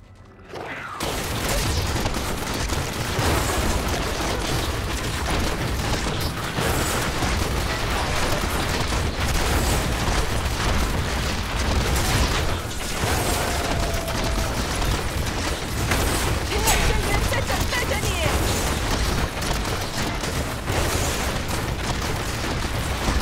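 Game spells crackle and blast in rapid bursts.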